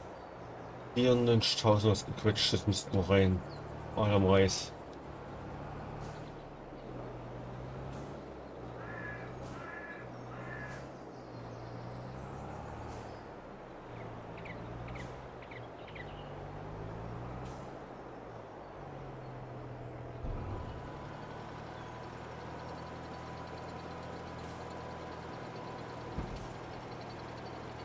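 A tractor engine hums steadily as it drives.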